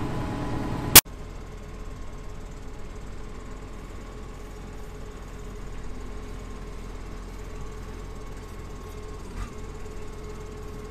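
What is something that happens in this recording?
A tractor engine hums in the distance.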